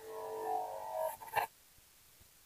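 Upbeat electronic game music plays, then cuts off.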